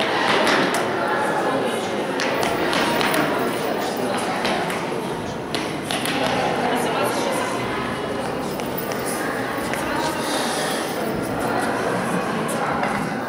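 Children chatter in a large echoing hall.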